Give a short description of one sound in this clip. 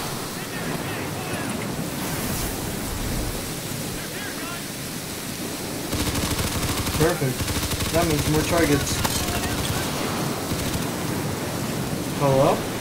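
Fire roars and crackles close by.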